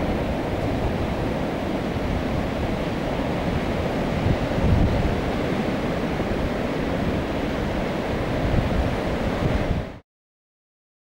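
Waves crash and surge against rocks, heard outdoors in wind.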